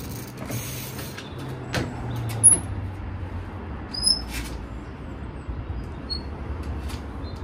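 Bicycle tyres thud and knock on wooden pallets.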